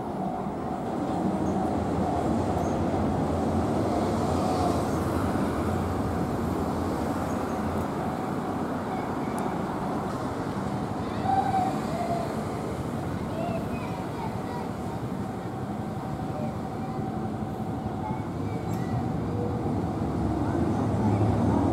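A train rumbles steadily across a nearby bridge.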